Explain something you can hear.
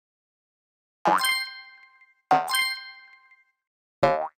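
Bright electronic chimes ring out from a video game.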